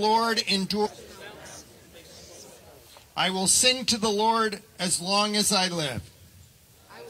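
An elderly man speaks slowly and solemnly through a microphone outdoors.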